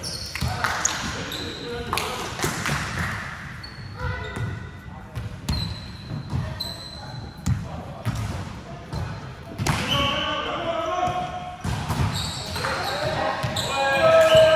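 Young men call out and shout in a large echoing hall.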